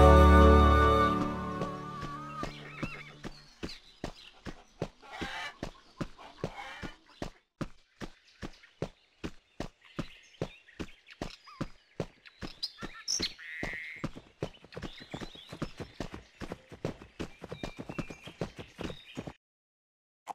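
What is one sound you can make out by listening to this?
Quick footsteps run steadily over dirt and grass.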